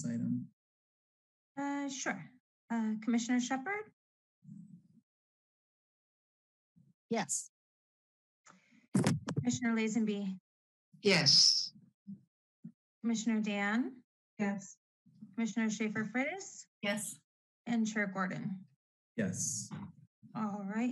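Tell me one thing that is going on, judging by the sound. A woman speaks steadily through an online call, with short pauses.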